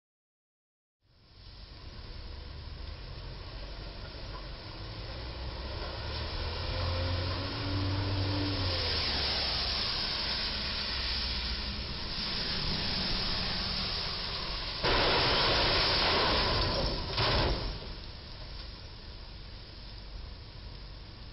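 Rain falls steadily on a wet road outdoors.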